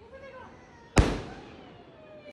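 A firework bursts overhead with a loud crack.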